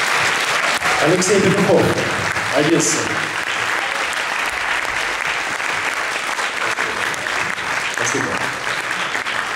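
A man speaks through a microphone, echoing in a large hall.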